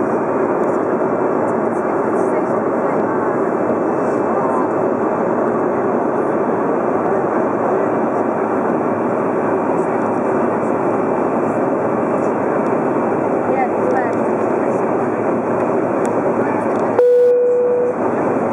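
A steady roar of airliner cabin noise fills the air in cruise, heard from inside the cabin.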